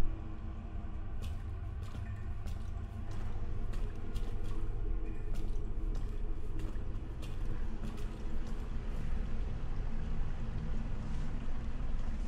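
Footsteps walk slowly across a hard floor.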